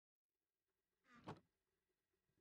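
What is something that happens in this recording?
A wooden chest lid shuts with a creak and a thud.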